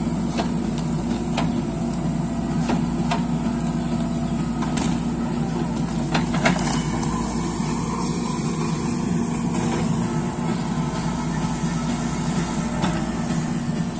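A digger bucket scrapes and knocks against dirt and roots.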